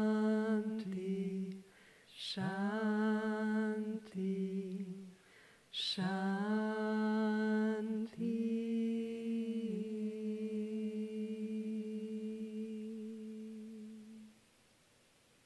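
A woman sings long, held notes into a microphone.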